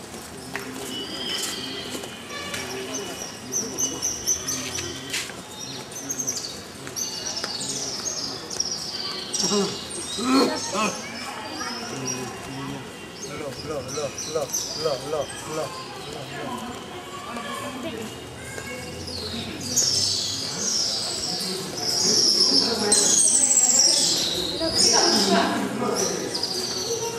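A crowd of men and women chatters nearby.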